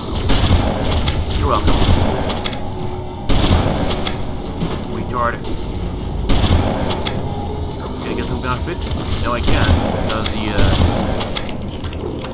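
Laser weapons fire in rapid bursts.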